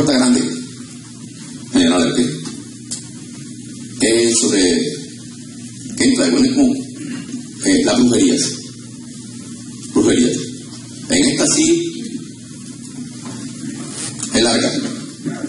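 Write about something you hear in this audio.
A man preaches with passion through a microphone and loudspeakers in an echoing hall, in loud bursts.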